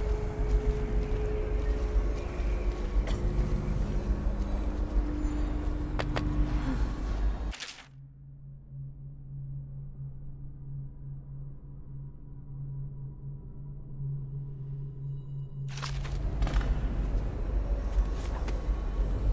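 Footsteps thud on wooden boards and stone.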